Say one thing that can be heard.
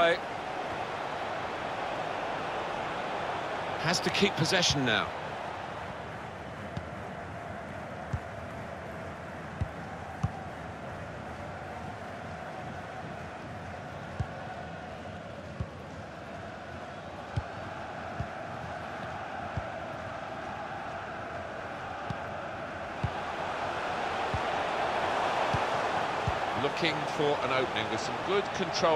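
A stadium crowd murmurs and cheers steadily, swelling louder toward the end.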